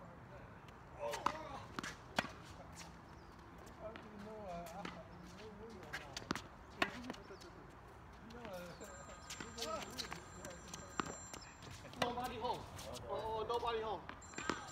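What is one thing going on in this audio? Adult players call out and talk across a tennis court.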